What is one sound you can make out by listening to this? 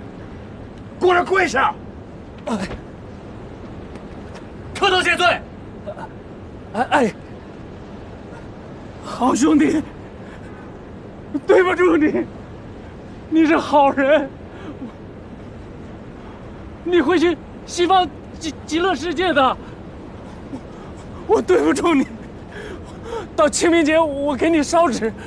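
A man speaks loudly and tearfully close by, in short emotional bursts.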